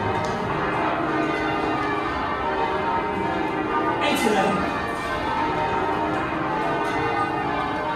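Church bells ring out loudly in a rapid, overlapping peal.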